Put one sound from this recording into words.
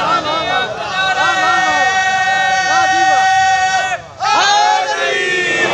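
A man sings a long held, wavering lament into a microphone, heard through loudspeakers in an echoing hall.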